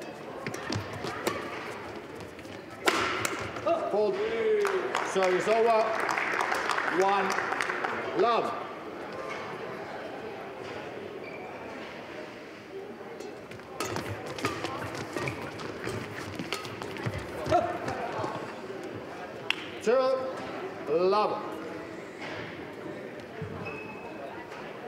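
Rackets strike a shuttlecock in quick rallies, in a large echoing hall.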